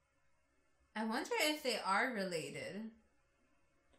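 A young woman speaks briefly and calmly into a microphone.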